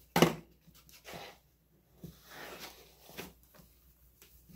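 A cardboard container rustles in hands.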